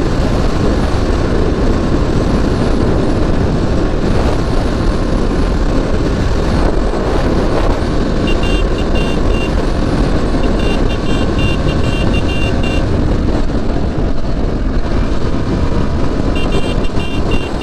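A motorcycle engine hums steadily while riding fast.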